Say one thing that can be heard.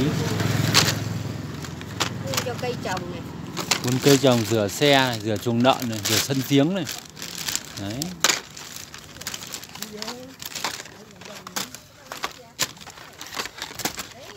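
Plastic packages rustle and clatter as they are handled.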